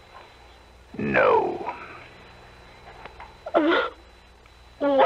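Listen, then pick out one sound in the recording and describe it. An old radio plays short, tinny bursts of sound through its small speaker.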